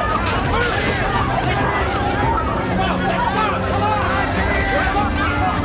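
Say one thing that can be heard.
A crowd of men shouts and cheers loudly close by.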